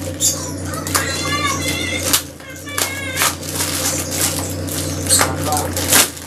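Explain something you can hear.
Scissors snip through plastic wrap.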